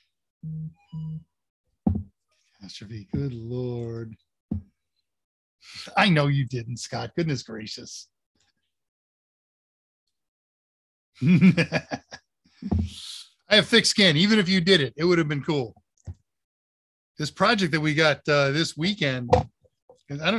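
An older man speaks casually through an online call microphone.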